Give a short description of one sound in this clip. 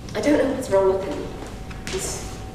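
A young woman reads lines aloud from a script.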